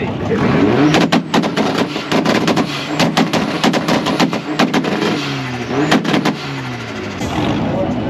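A car exhaust pops and crackles.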